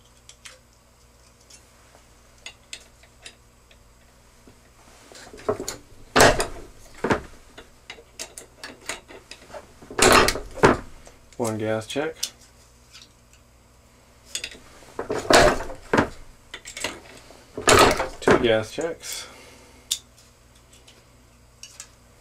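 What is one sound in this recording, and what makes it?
Small metal parts click and clink in the hands.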